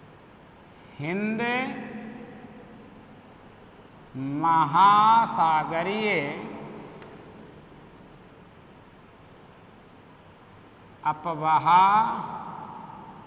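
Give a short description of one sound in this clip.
A man speaks in short, loud phrases with pauses, in an echoing room.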